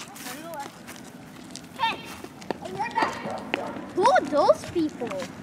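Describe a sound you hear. A young girl talks close by in a lively voice.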